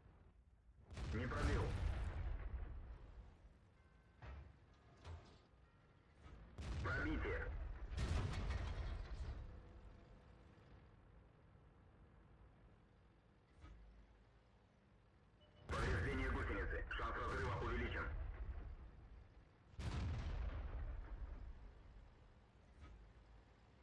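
Tank cannons fire and shells burst with deep, booming blasts.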